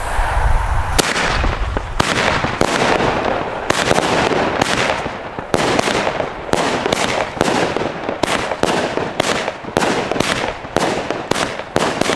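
Fireworks crackle and bang rapidly overhead.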